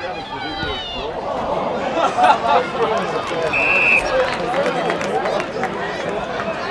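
A large crowd cheers and applauds outdoors.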